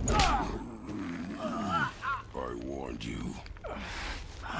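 A deep-voiced man speaks gruffly, close by.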